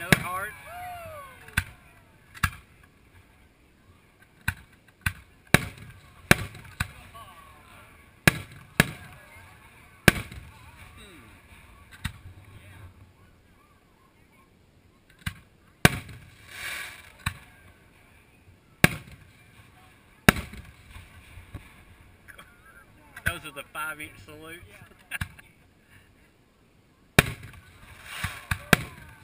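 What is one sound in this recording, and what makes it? Fireworks burst with loud, sharp bangs that echo off into the distance.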